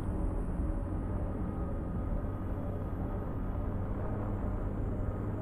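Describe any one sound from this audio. A vehicle engine rumbles steadily as it drives over rough ground.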